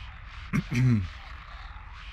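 A man speaks briefly and close to a headset microphone.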